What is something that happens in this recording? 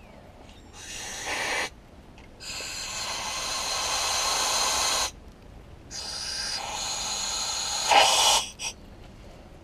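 Compressed air hisses loudly in bursts from a nozzle.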